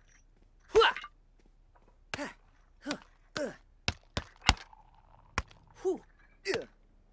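Gloved fists thump a punching bag in quick, sharp blows.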